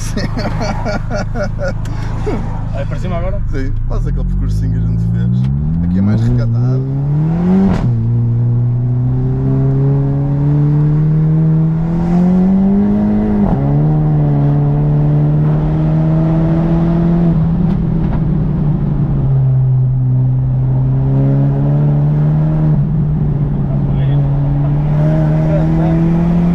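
A car engine revs up, rising in pitch and dropping at each gear change.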